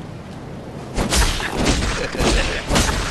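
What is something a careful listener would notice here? A blade slashes and strikes with a wet impact.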